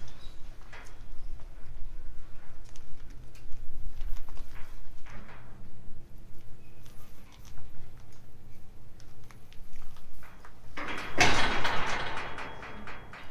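A livestock trailer rolls slowly closer.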